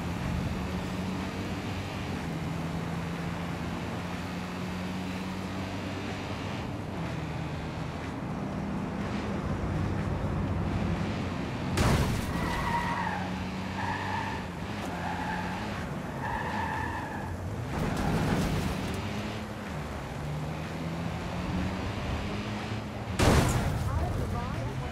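A car engine hums steadily as it speeds along.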